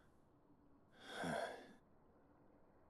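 A young man chuckles briefly.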